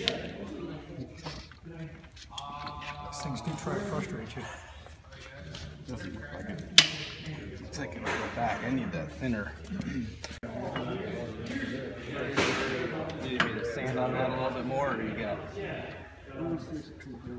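Men talk nearby in a calm, conversational way.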